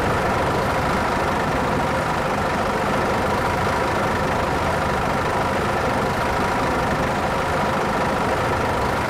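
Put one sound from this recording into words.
A city bus engine idles.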